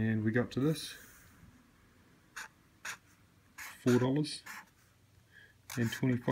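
A felt marker squeaks softly as it writes.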